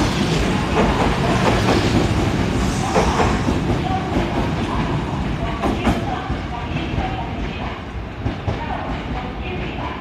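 A train rumbles and clatters along the tracks as it pulls away and fades into the distance.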